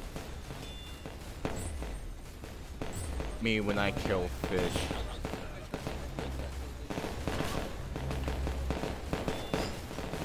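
Explosions boom repeatedly in a video game.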